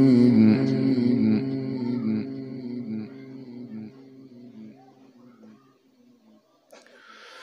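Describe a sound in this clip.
An elderly man chants a long, melodic recitation into a microphone, his voice slowly fading.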